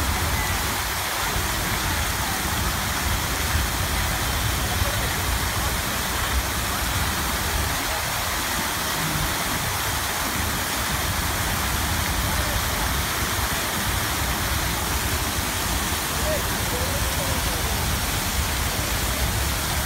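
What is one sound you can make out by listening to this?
Fountain jets spray and splash down into a pool.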